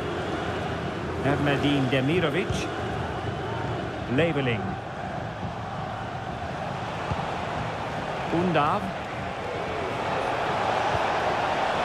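A large crowd roars steadily in a big open stadium.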